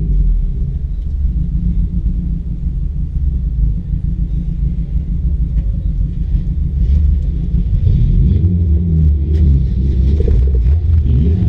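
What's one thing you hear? A car engine idles, heard from inside a stripped-out cabin.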